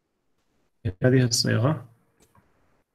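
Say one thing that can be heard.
A man speaks briefly and calmly into a microphone.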